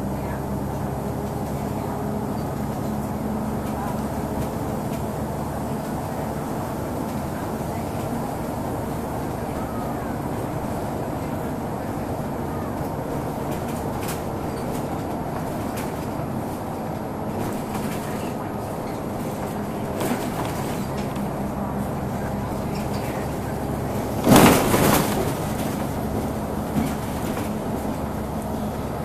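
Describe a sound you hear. The bus rattles and shakes over the road.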